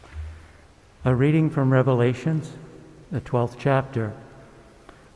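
An older man reads aloud calmly into a microphone.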